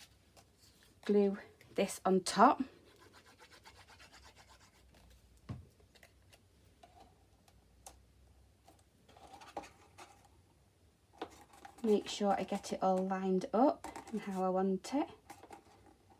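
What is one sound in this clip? Hands fold and handle a small card box.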